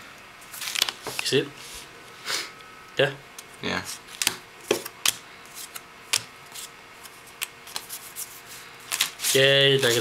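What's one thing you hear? Playing cards flick and tap against each other.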